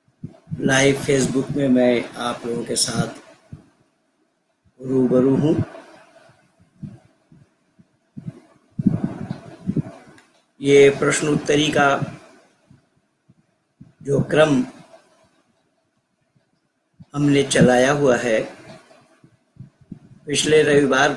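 An elderly man speaks calmly and slowly into a close microphone, with pauses.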